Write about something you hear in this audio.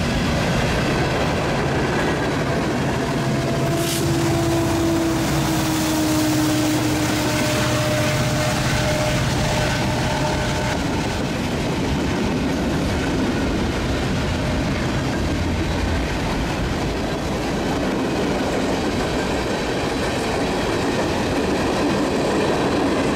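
A freight train rumbles and clatters past on the tracks.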